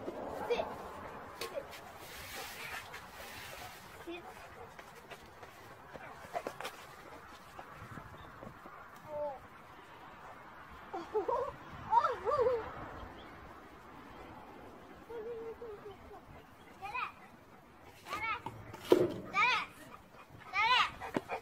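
Young children shout and chatter nearby, outdoors.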